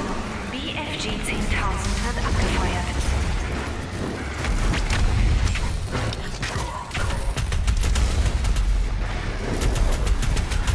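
Gunfire blasts rapidly in quick bursts.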